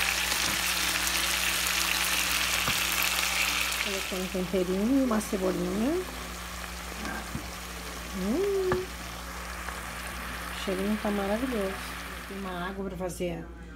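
Food sizzles and hisses in a hot pot.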